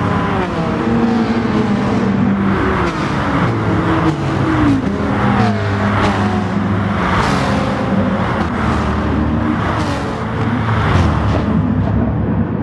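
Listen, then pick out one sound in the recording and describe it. Several racing car engines roar and whine as they rev up and shift gears.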